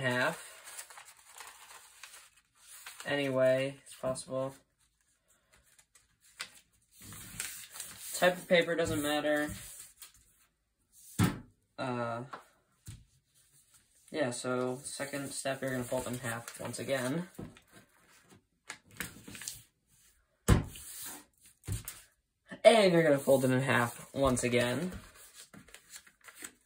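Paper rustles and crinkles as it is folded and pressed flat.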